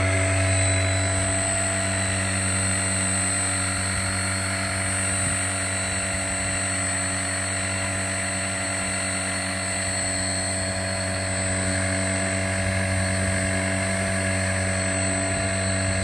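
A small electric motor whines steadily close by.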